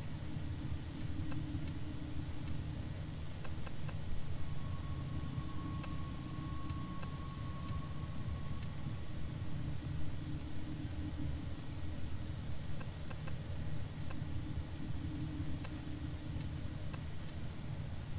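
Short interface clicks tick now and then.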